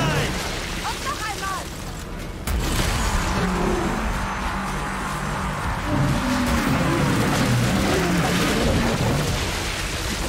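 Explosions boom and rumble loudly.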